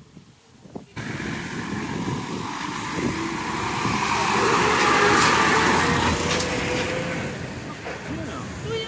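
A truck engine rumbles close by as the truck passes.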